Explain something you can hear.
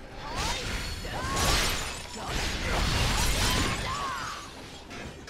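Blades slash and clash in a loud fight.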